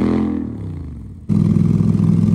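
An all-terrain vehicle engine winds down.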